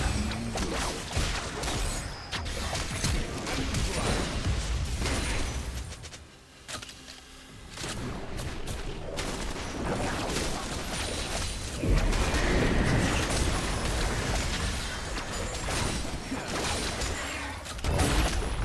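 Magic spells crackle and burst in a busy fantasy battle.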